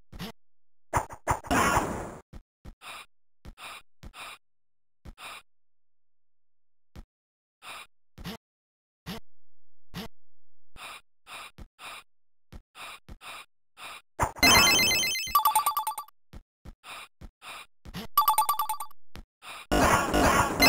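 Game sound effects burst out in short noisy and tinkling bursts.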